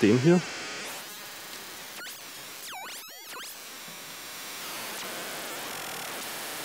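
Patch cables click as they are plugged in.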